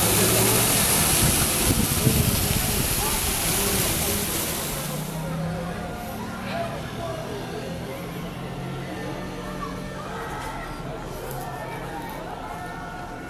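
A crowd of men and women talks in a murmur below, heard from high above.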